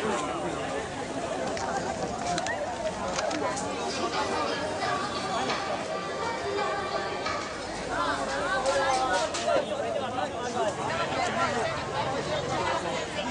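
A crowd of people chatter all around.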